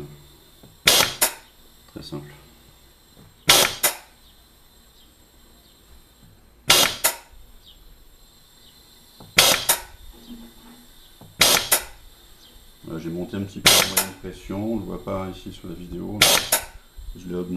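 Compressed air hisses in short, sharp bursts.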